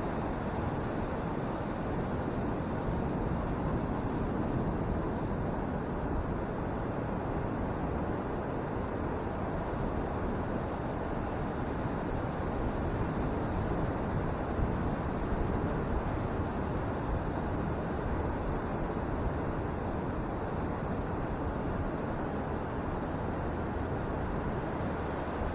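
Ocean waves crash and roll onto the shore.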